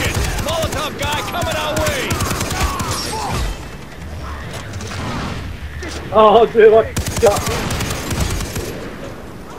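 A mounted machine gun fires in rapid bursts.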